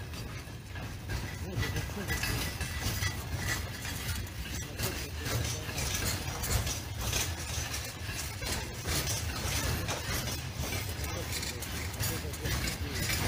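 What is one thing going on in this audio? A freight train rumbles steadily along the tracks nearby.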